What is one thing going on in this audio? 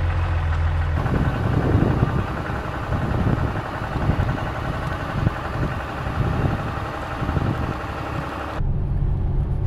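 Wind rushes past an open truck window.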